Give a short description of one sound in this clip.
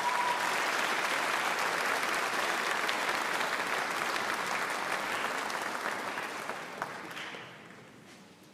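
An audience applauds in a large hall and the applause fades away.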